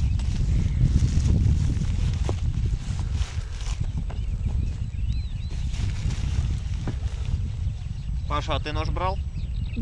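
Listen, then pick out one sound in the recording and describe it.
A young man rummages through a rustling bag.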